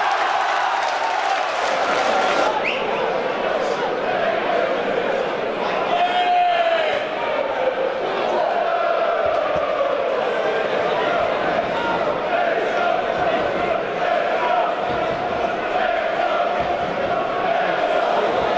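A crowd murmurs in a stadium.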